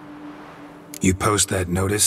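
A man with a low, gravelly voice speaks calmly, close by.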